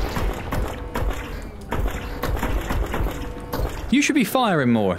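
An energy gun fires rapid crackling zaps.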